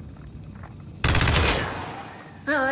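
A rifle fires a short burst.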